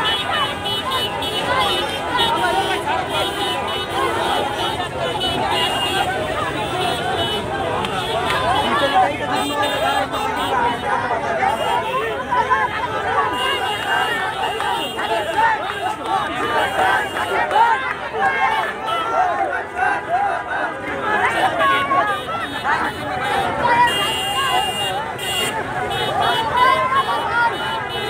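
A large crowd of men shouts and cheers excitedly close by, outdoors.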